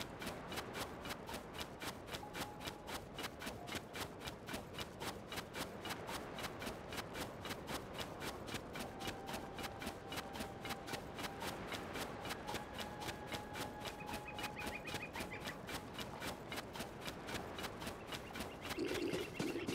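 Quick footsteps run across sand.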